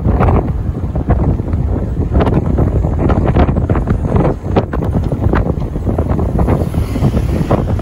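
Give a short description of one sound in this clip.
Tyres rumble over a road surface.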